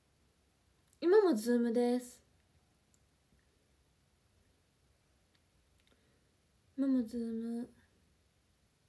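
A young woman speaks briefly and calmly, close to a microphone.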